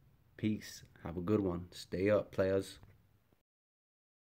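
A young man speaks calmly and close to the microphone.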